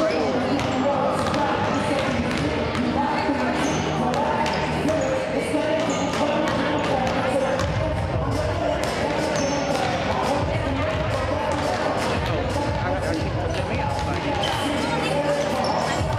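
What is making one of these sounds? Basketballs bounce on a wooden floor in a large echoing gym.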